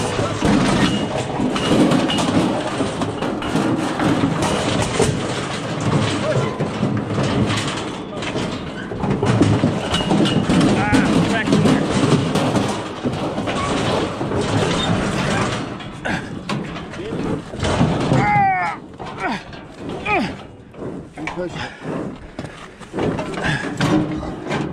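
Metal chute gates rattle and clank close by.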